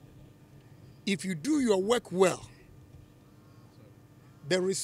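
A middle-aged man speaks forcefully into microphones outdoors.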